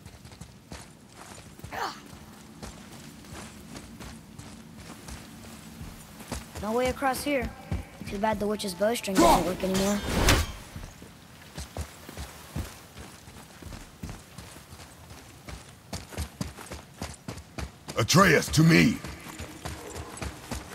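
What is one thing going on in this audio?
Heavy footsteps thud steadily on stone.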